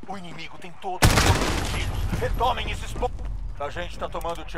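Loud gunfire bursts out close by.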